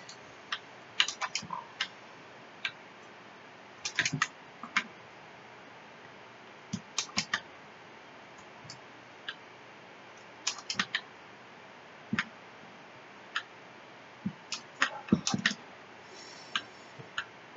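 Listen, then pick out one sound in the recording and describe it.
Short electronic shots blip again and again.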